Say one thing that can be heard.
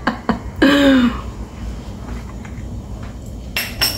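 A middle-aged woman sips a drink with a slurp.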